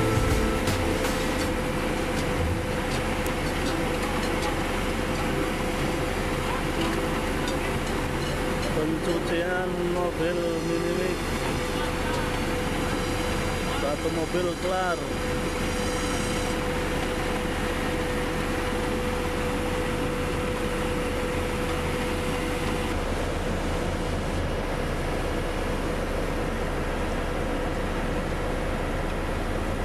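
Heavy diesel engines rumble and drone steadily nearby.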